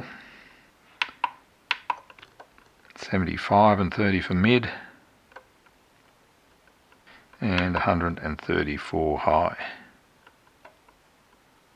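A scroll wheel on a handheld controller clicks softly as a thumb turns it.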